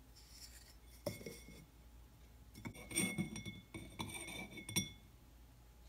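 A wooden lid clicks softly against a glass jar.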